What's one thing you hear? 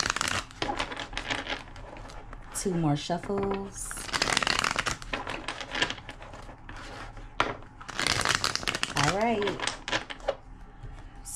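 Playing cards shuffle and riffle with a quick papery flutter.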